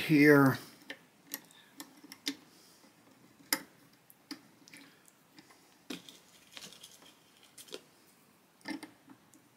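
Small metal parts click and tap against a wooden instrument body.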